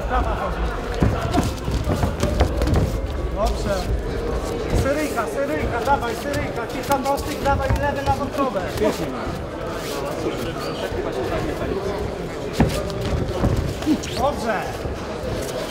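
Boxing gloves thud as punches land.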